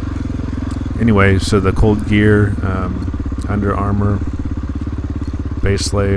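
A dirt bike engine revs up sharply in bursts.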